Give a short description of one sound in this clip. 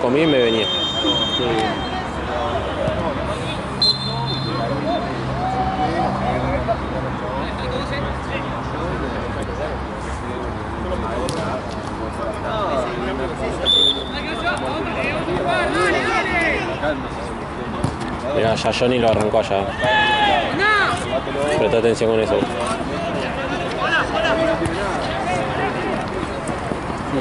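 Men shout to each other outdoors across a playing field.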